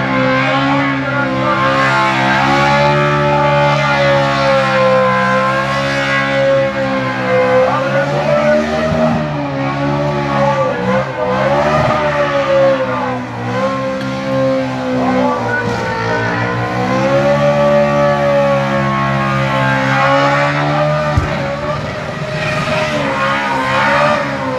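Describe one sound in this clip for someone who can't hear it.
Tyres screech as a car spins doing burnouts.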